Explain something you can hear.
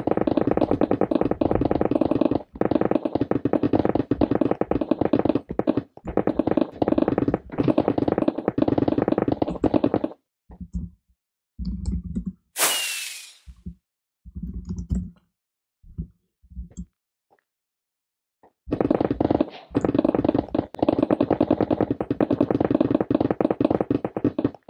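Stone blocks break in a rapid, steady crunching stream.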